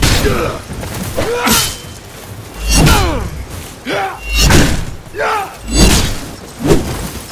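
Swords slash and strike with heavy thuds in a close fight.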